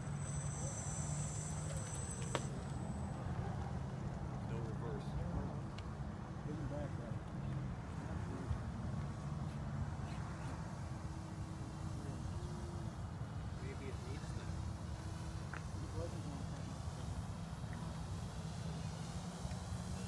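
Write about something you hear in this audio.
A small propeller plane drones steadily overhead.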